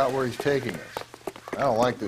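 Footsteps run quickly on a paved path.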